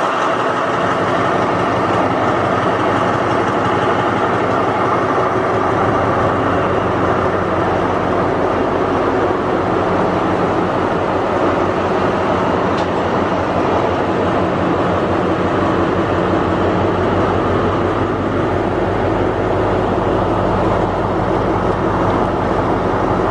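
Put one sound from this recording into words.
A diesel locomotive engine idles with a deep, steady throb.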